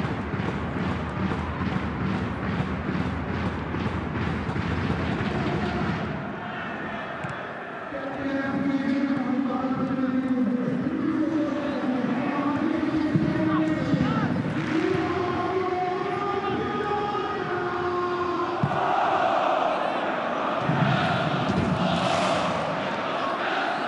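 A large stadium crowd chants and roars steadily.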